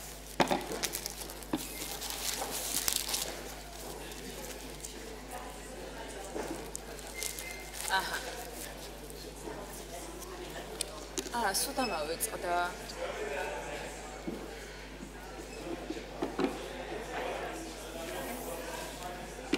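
Several men and women chat and murmur quietly nearby.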